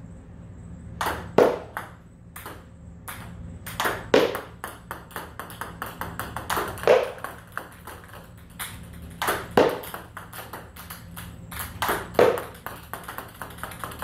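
A ping pong ball bounces and clicks sharply on a table.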